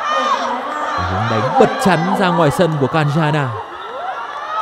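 Young women shout and cheer in celebration close by.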